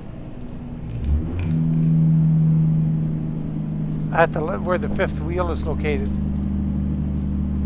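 A truck engine hums and drones steadily.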